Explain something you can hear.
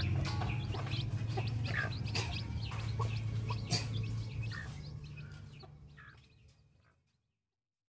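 A hen clucks softly.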